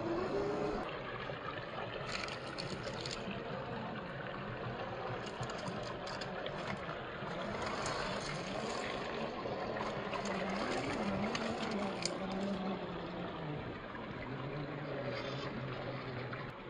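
A small electric motor whines steadily, rising and falling in pitch.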